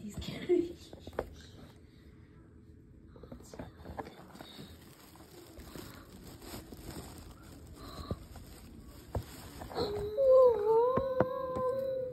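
Wood shavings rustle and crackle as a small animal burrows.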